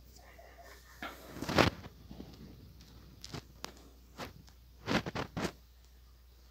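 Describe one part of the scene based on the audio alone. Fabric rustles and bumps close by.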